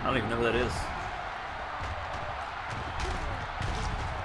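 Football players collide with a heavy thud in a tackle.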